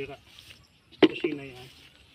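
A plant stem snaps.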